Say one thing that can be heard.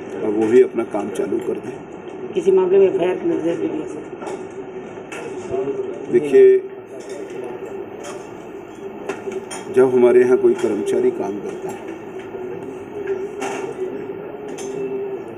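A middle-aged man speaks calmly into microphones at close range.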